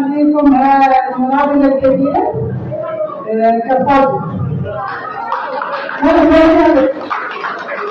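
A woman sings loudly into a microphone in an echoing hall.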